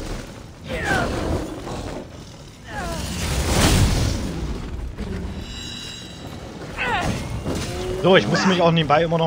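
A lion growls and snarls.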